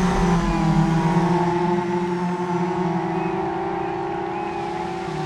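Many racing car engines roar loudly together.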